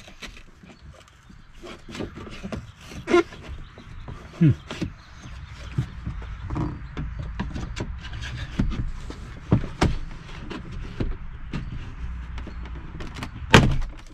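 Plastic trim clicks and snaps as a car door panel is pried loose.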